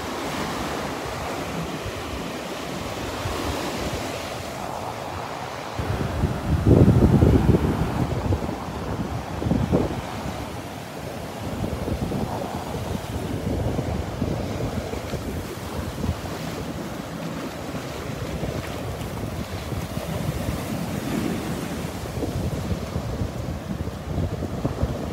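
Ocean waves crash and wash steadily onto a beach.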